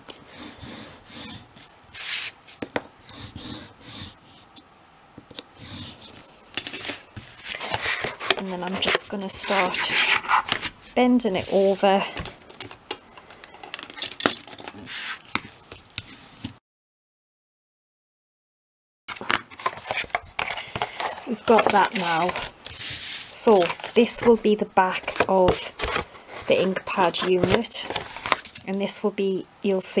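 Stiff card slides and rustles against a cutting mat.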